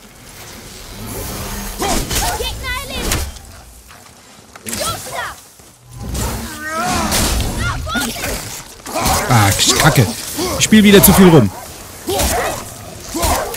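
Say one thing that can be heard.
A wild beast snarls and growls.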